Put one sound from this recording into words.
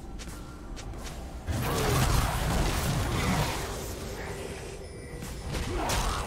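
Video game battle sounds of spells and blows crackle and whoosh.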